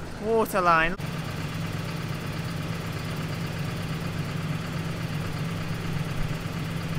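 A large machine's engine idles nearby with a low steady hum.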